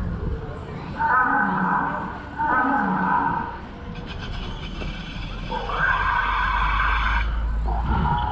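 A dinosaur model roars loudly through a loudspeaker.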